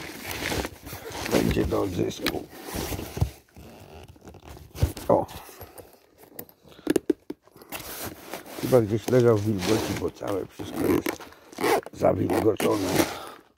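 A padded fabric case rustles and scrapes as hands handle it up close.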